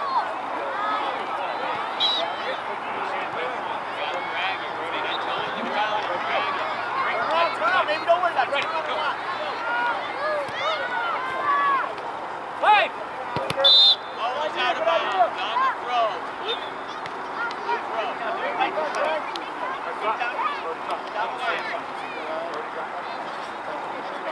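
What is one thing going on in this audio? Young players shout to each other across the field.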